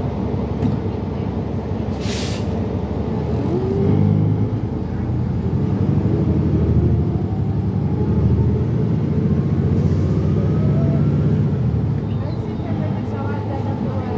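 A vehicle's engine rumbles steadily, heard from inside as it drives along.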